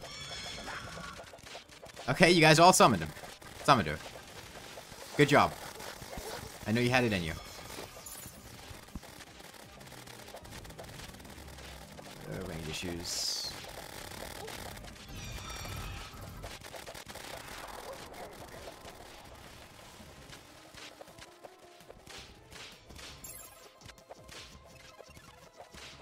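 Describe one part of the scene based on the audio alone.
Magical beams and projectiles whoosh and crackle in a video game battle.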